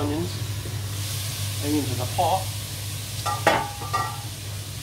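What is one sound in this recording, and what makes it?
A metal pot lid clanks as it is lifted and set down.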